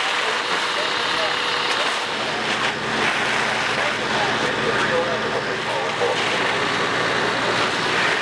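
A high-pressure fire hose sprays water onto a burning roof.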